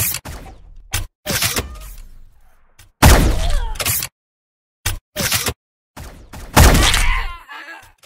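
A rifle fires loud, sharp shots that ring out and fade.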